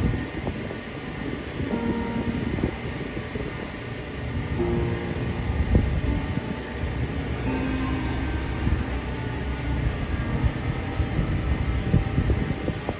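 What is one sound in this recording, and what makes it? A marching band plays outdoors, heard from a distance.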